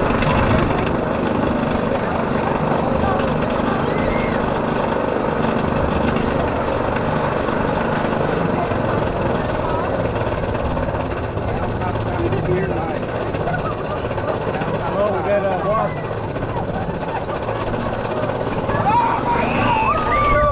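Young men and women riding nearby chat and laugh with excitement.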